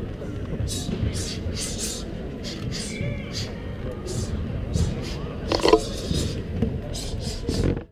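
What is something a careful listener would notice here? Shoes squeak and thud on a wooden floor.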